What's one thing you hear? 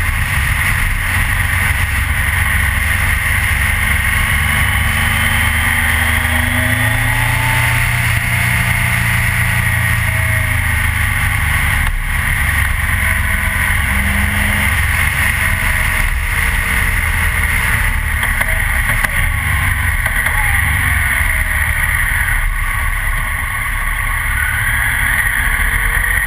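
A motorcycle engine drones steadily close by, with pitch rising and falling as it changes speed.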